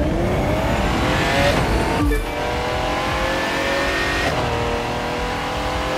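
A race car engine roars at high revs, rising in pitch as it speeds up.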